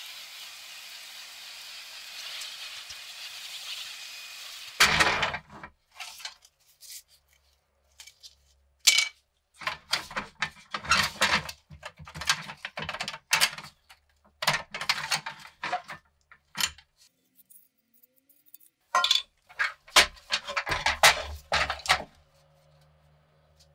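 A toy truck's metal parts clack and rattle as they are handled.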